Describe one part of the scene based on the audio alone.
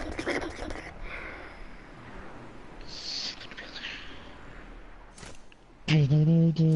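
A young boy talks through a microphone.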